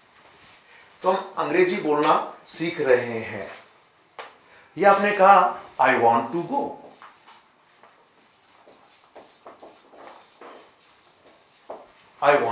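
A middle-aged man speaks clearly and calmly, as if teaching.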